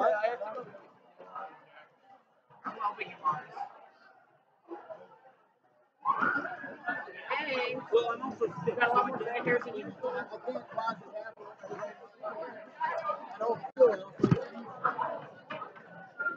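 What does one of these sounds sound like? Several people talk in a crowded room.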